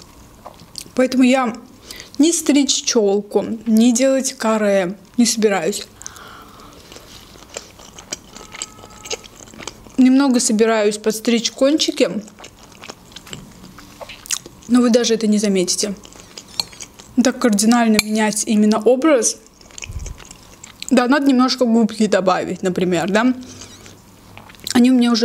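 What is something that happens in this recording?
A young woman talks softly and closely into a microphone.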